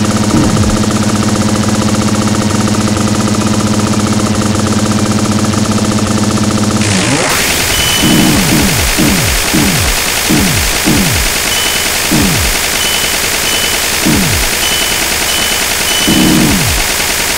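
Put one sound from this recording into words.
Fast electronic game music plays loudly.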